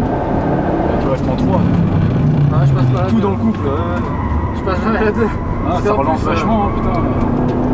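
Tyres squeal through tight corners.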